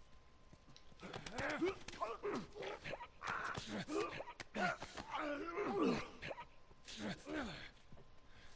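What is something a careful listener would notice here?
A man grunts and chokes as he struggles in a chokehold, heard up close.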